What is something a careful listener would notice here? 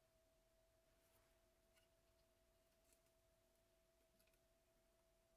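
A plastic tube taps and clicks softly against a metal sink.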